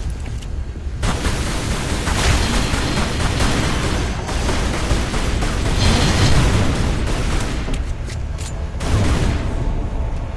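Pistol shots fire rapidly, echoing loudly.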